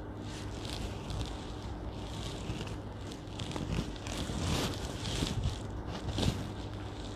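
Fabric rustles as it is handled.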